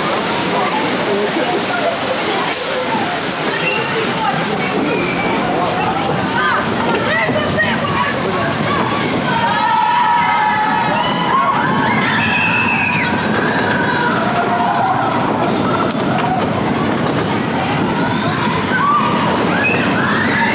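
A wooden roller coaster rattles and rumbles along its track.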